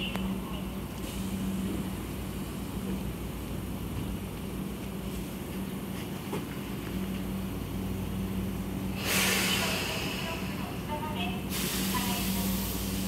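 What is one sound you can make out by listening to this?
An electric train hums steadily while standing at a platform.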